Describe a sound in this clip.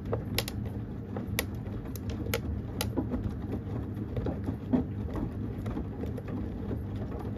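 Buttons or zips click against a washing machine drum.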